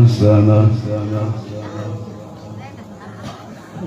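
An elderly man sings a long drawn-out note into a microphone, heard through loudspeakers.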